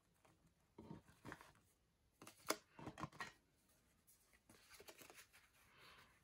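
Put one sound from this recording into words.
Paper cards rustle and tap as hands handle them.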